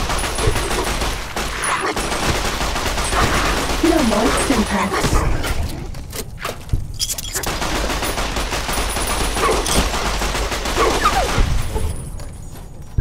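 A gun fires in loud, rapid bursts.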